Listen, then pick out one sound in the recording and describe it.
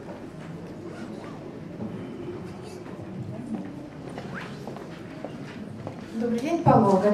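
A middle-aged woman talks into a microphone.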